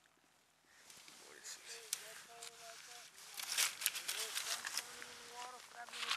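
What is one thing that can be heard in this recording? Dry grass rustles underfoot.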